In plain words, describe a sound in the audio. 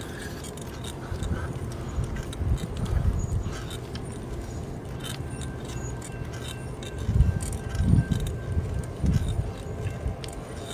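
Wind rumbles against the microphone in low gusts.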